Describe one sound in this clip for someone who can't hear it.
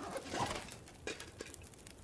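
A fire crackles and burns.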